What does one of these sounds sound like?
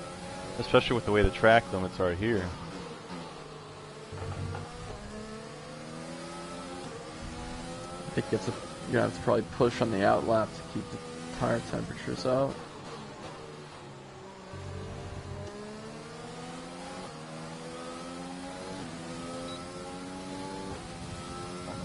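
A racing car engine whines at high revs, rising and dropping in pitch as it shifts gears.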